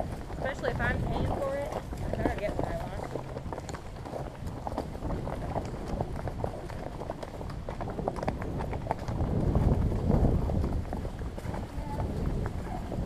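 Horse hooves thud and crunch on dry leaves along a trail.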